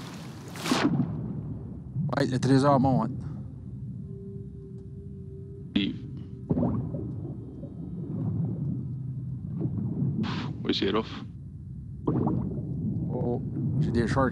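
Water gurgles and bubbles, muffled as if heard underwater.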